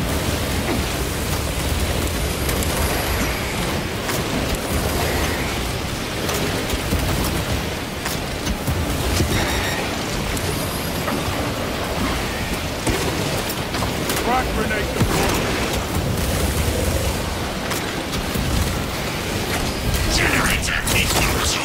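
Explosions boom and roar in quick succession.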